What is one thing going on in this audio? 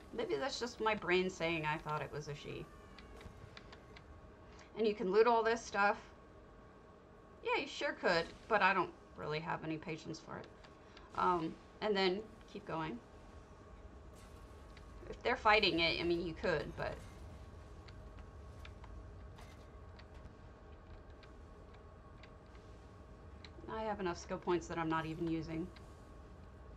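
A young woman talks casually into a close microphone, in short bursts with pauses.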